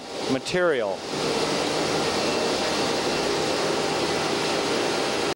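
A printing machine runs with a steady loud clatter and hum.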